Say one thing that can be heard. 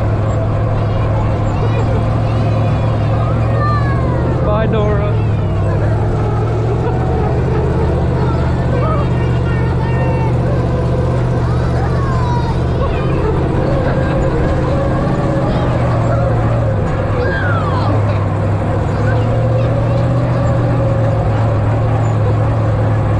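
Wind rushes past the open vehicle.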